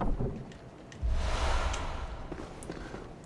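A heavy chest lid creaks open.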